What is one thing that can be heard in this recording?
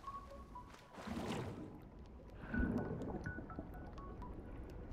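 Bubbles gurgle and burble underwater.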